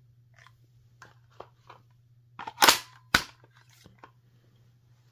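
A plastic magazine clicks and clacks into a toy rifle.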